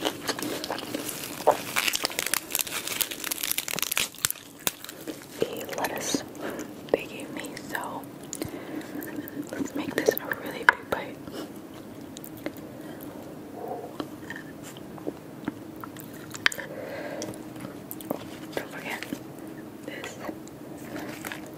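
Crisp lettuce leaves rustle and crunch as hands tear and fold them.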